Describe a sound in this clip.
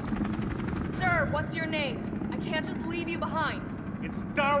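A young woman calls out loudly.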